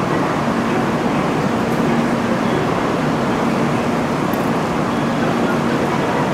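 A high-speed train hums while it stands at a platform.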